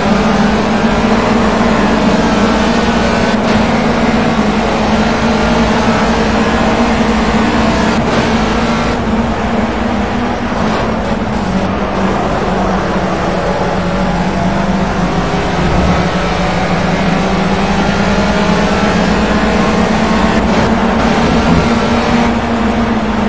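A racing car engine roars steadily at high revs, shifting pitch as the car speeds up and slows down.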